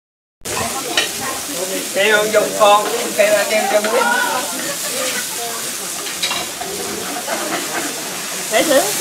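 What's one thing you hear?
Metal utensils clink against pans.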